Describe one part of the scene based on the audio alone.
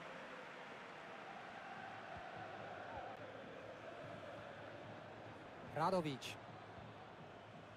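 A stadium crowd murmurs and chants steadily in the background.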